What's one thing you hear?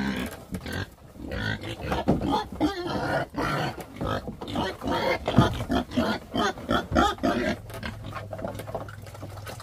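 Pigs grunt and snuffle close by.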